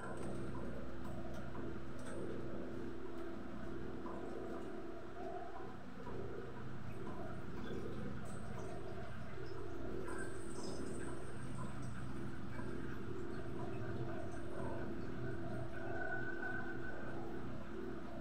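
Utensils clink in a metal bowl.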